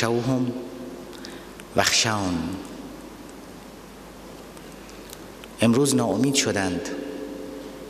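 A middle-aged man speaks forcefully into a microphone, in short bursts with pauses.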